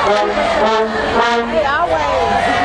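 A marching band's brass horns blare loudly in an open-air stadium.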